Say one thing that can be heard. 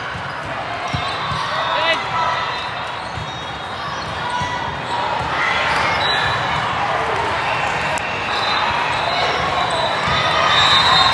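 A volleyball is struck with a hard slap.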